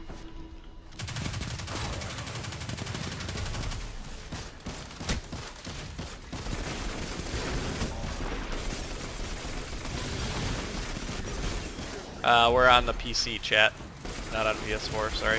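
Guns fire in rapid bursts amid loud battle noise.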